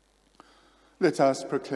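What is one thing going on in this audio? A man speaks clearly through a microphone.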